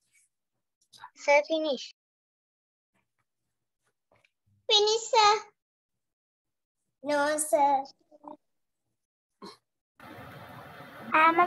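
A child speaks in short bursts, heard through an online call.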